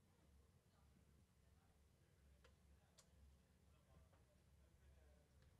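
An electric guitar plays low, heavy chords through an amplifier.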